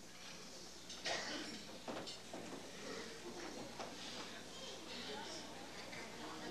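An elderly man speaks calmly into a microphone in a room with some echo.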